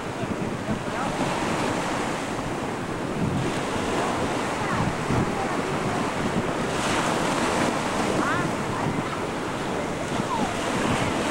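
Wind blows across the recording outdoors.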